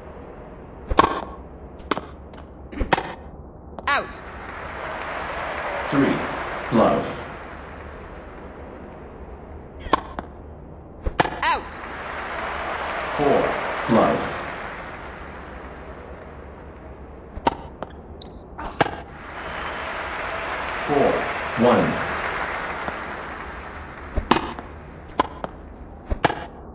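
Tennis balls are struck with sharp pops in a game.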